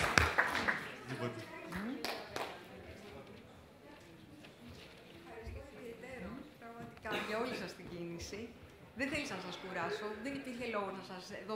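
A woman speaks calmly through a microphone and loudspeakers in a large room.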